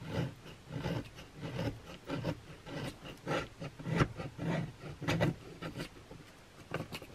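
A knife scrapes and shaves thin curls from a piece of wood.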